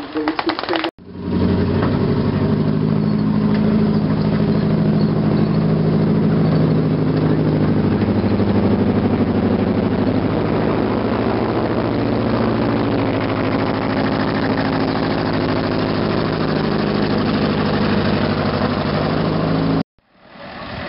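A tank's engine rumbles deeply close by.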